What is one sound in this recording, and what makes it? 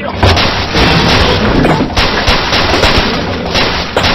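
A crate explodes with a loud blast.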